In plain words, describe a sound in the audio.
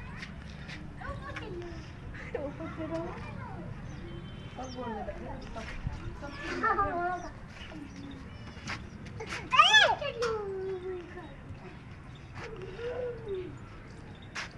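Small children chatter and squeal nearby.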